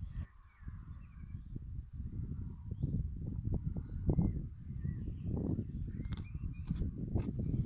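A wooden stick scrapes in soil.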